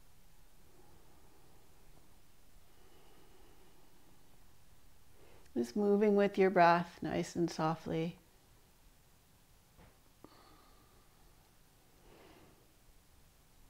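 A young woman speaks calmly and steadily, close by.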